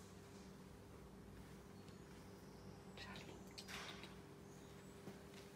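A hand softly strokes a cat's fur with a gentle rustle.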